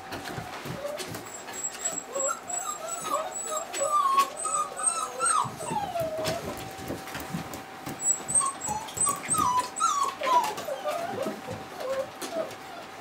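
Puppies whimper and squeal.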